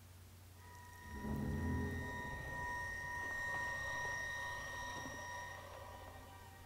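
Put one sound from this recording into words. A glowing beam of light hums steadily with a low rumble.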